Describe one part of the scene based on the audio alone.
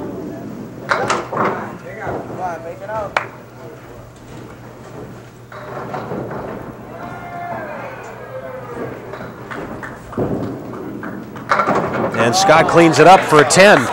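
Bowling pins clatter as a ball strikes them.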